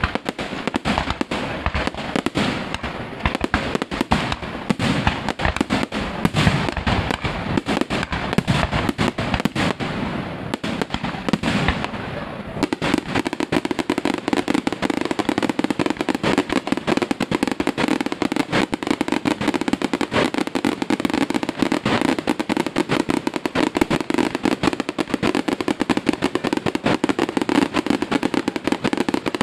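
Fireworks burst and crackle overhead in rapid bangs.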